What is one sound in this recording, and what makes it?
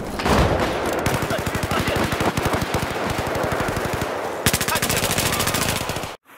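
A rifle fires in rapid bursts of shots.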